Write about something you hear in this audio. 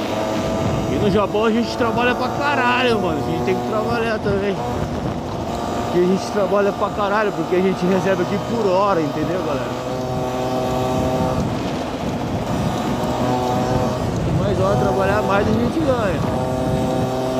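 A man talks close to a helmet microphone with animation.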